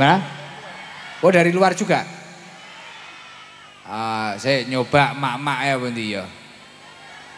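A young man sings in long drawn-out phrases through a microphone and loudspeakers.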